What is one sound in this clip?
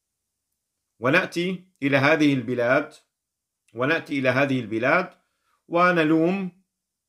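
A middle-aged man speaks calmly and earnestly, close to a microphone.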